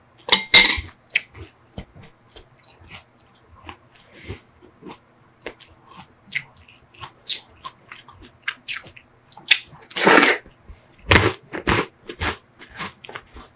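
A man eats close to a microphone with wet, smacking mouth sounds.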